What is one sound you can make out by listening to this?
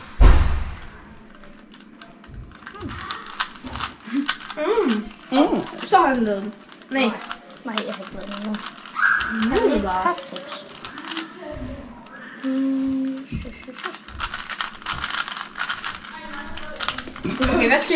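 Plastic cube pieces click and rattle as a puzzle cube is twisted.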